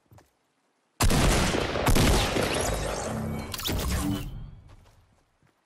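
A shotgun fires with a loud boom that rumbles away.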